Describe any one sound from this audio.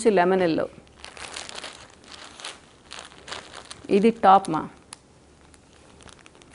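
Fabric rustles as it is handled.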